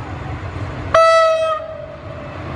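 A diesel locomotive sounds a short horn blast.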